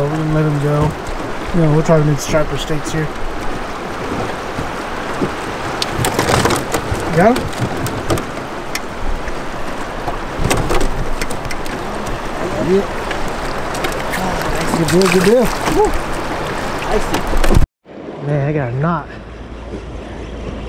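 A river rushes and splashes around a boat.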